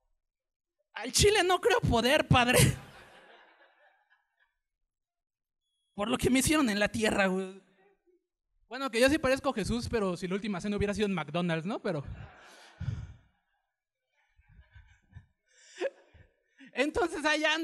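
A man speaks animatedly into a microphone, heard through loudspeakers.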